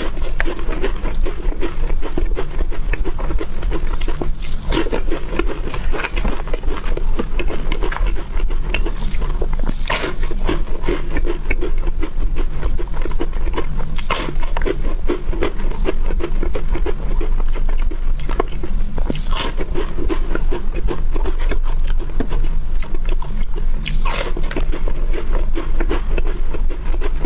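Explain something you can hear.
A young woman chews crunchy wafers close to a microphone.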